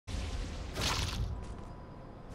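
Wind rushes loudly past as a game character glides down, then fades.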